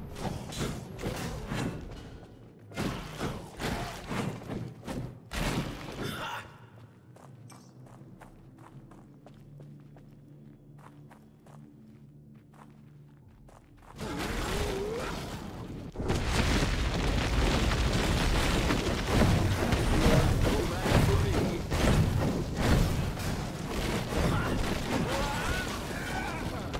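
Game combat sounds clash and thud as a hero fights monsters.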